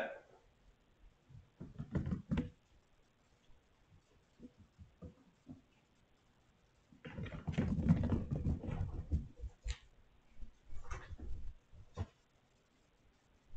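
A kitten's paws patter softly across a wooden floor.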